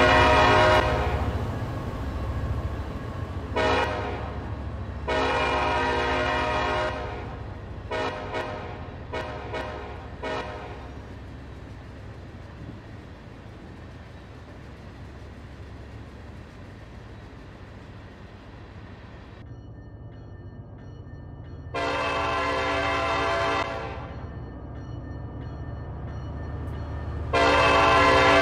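A diesel locomotive horn blows in loud repeated blasts.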